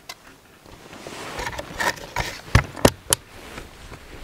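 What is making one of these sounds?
A plastic tackle box clatters and snaps shut.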